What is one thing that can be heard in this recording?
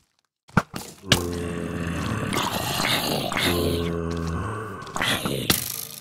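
A sword strikes a zombie with dull thuds.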